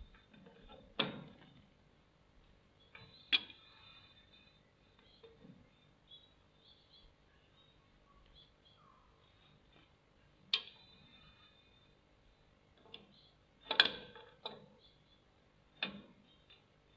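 Metal clanks sharply now and then.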